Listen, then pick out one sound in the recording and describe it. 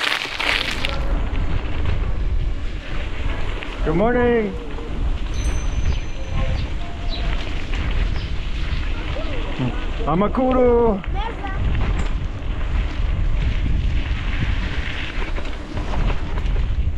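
Bicycles roll down a bumpy dirt track.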